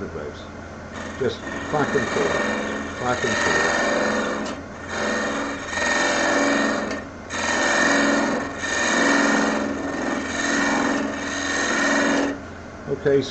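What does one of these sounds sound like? A gouge scrapes and hisses against spinning wood in repeated passes.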